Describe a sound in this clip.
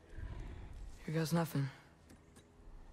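A young boy speaks quietly.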